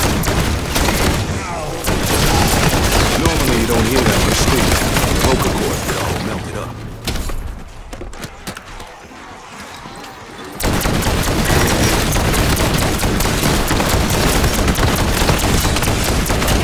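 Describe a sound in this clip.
Automatic gunfire rattles rapidly and loudly.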